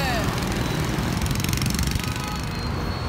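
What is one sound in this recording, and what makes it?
A motor scooter rides past nearby.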